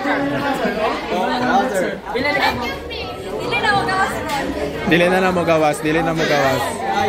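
Teenage boys talk and laugh close by.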